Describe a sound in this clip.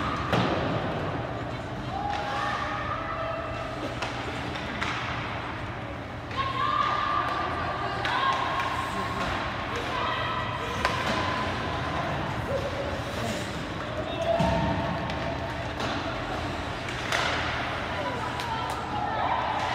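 Ice skates scrape and swish across the ice in a large echoing rink.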